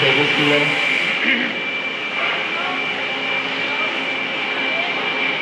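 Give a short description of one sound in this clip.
A middle-aged man talks calmly into a close microphone.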